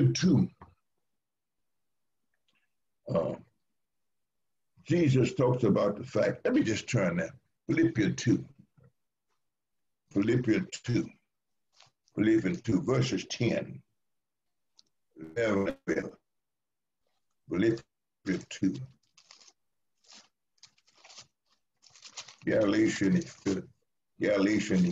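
An elderly man speaks calmly in pauses, heard through an online call.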